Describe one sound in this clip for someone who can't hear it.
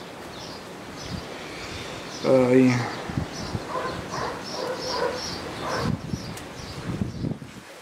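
Small shears snip leaves.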